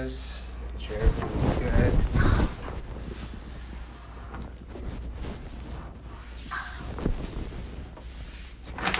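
Paper crinkles and rustles as it is pulled across a padded table.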